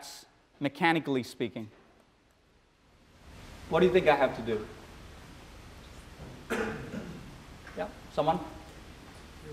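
A man speaks calmly through a microphone.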